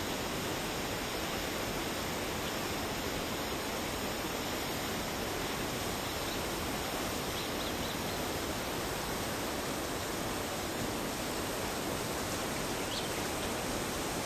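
Wind blows steadily across open water outdoors.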